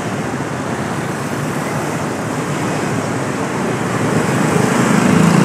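Motorbike engines hum and buzz past on a busy street outdoors.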